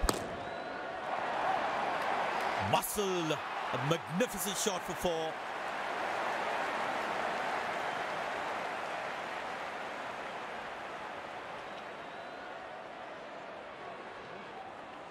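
A stadium crowd roars and cheers, then slowly dies down.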